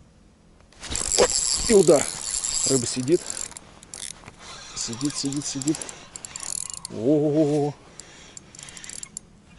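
A fishing reel clicks and whirs close by as it is handled.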